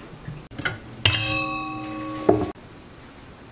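A steel mixing bowl clanks and rings.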